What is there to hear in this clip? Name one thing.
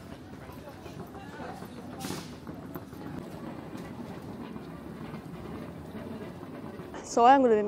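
Suitcase wheels roll along a hard floor.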